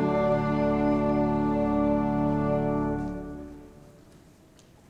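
A choir sings a loud final chord that dies away in a large echoing hall.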